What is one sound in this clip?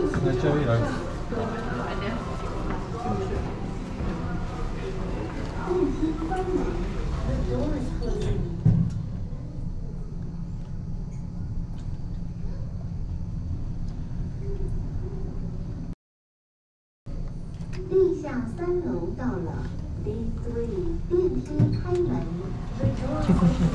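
Several adults chatter nearby.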